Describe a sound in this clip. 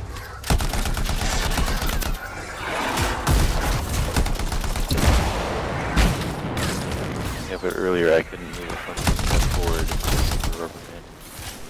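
A flamethrower roars in loud bursts.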